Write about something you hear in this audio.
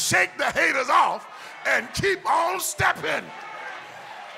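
A man preaches loudly and with passion through a microphone in an echoing hall.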